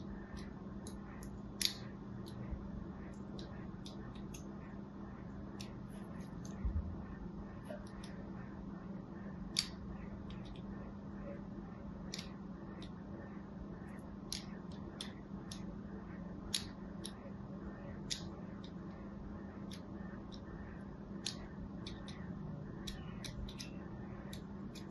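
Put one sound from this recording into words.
A needle scratches and scores into soft soap with faint, crisp scraping.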